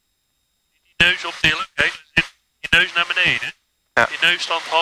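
A man speaks over a headset intercom.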